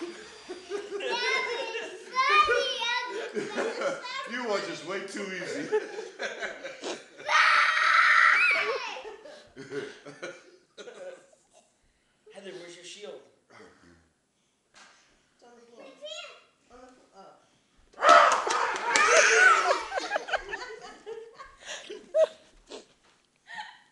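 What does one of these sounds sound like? A young girl squeals and chatters excitedly close by.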